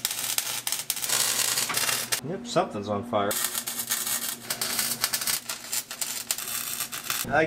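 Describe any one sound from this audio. An electric welder crackles and sizzles steadily.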